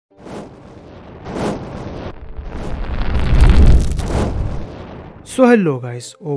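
A deep fiery blast rumbles and roars.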